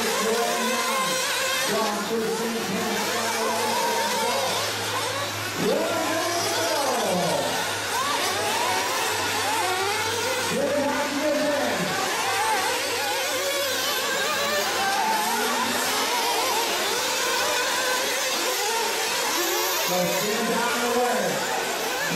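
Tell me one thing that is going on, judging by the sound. Small electric model cars whine loudly as their motors rev up and down around a track.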